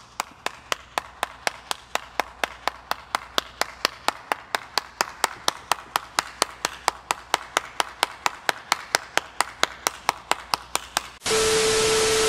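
A man claps his hands slowly and steadily.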